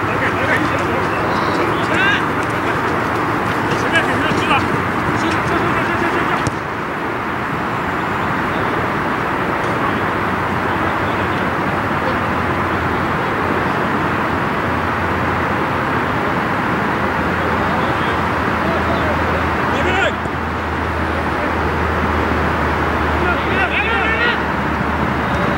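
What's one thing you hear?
Men shout to each other from a distance outdoors.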